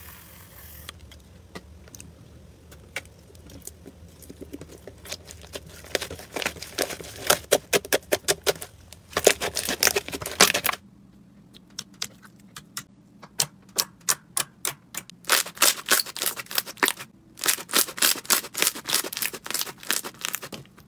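Wet slime squelches and pops as hands squeeze it.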